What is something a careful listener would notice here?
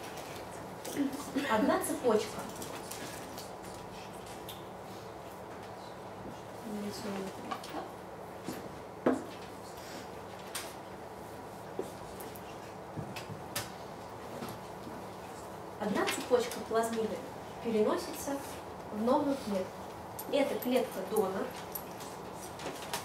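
A woman speaks calmly from a short distance, with pauses.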